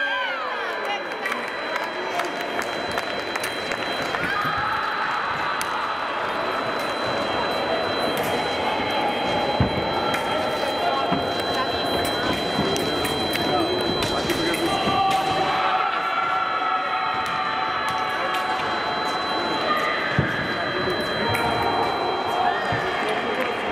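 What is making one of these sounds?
Voices of a crowd murmur and chatter in a large echoing hall.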